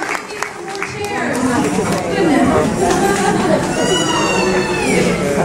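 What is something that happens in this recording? Children sing together in an echoing hall.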